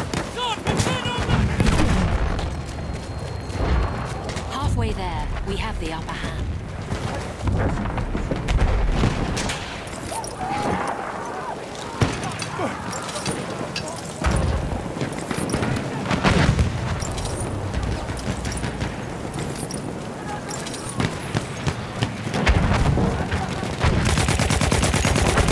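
Explosions boom and rumble all around.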